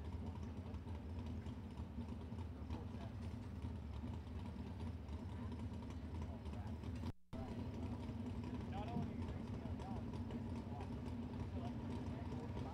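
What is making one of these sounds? An all-terrain vehicle engine idles with a steady low rumble.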